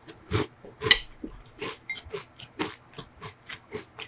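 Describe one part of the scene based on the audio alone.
A metal spoon clinks against a glass bowl.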